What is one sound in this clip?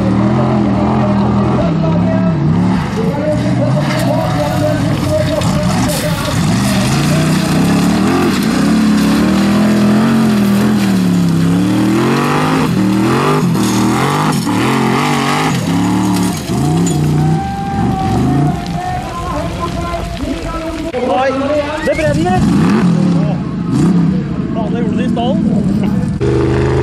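An engine roars loudly, revving up and down hard.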